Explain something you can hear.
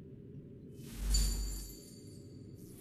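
A game menu plays a short chime as an item is bought.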